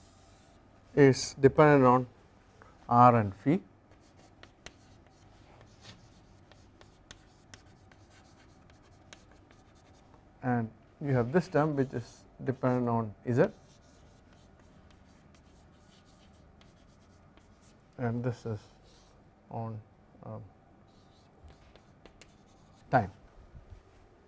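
A man speaks calmly in short phrases, close by, with a slight room echo.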